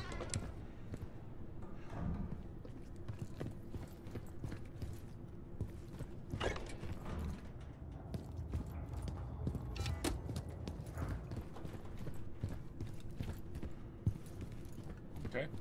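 Footsteps thud slowly.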